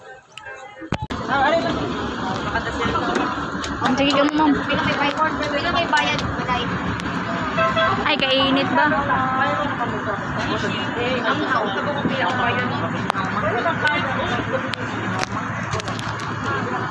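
Many young women chatter and talk close by.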